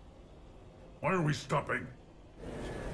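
A creature speaks briefly in a deep, rasping voice.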